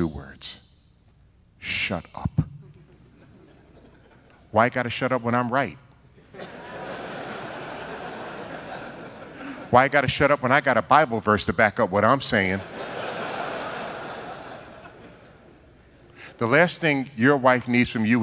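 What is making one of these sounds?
An elderly man speaks with animation into a microphone in a large room, with pauses between phrases.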